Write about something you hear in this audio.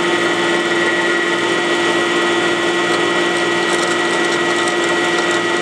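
A drill bores through a thin metal sheet.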